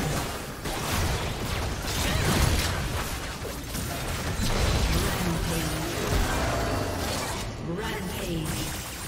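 Game spells and weapons clash and burst in a busy fight.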